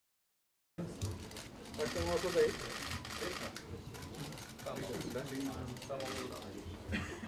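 A man speaks calmly into microphones.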